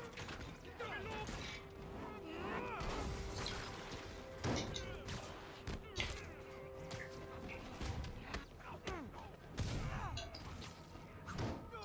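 Punches and blows land in quick, heavy thuds.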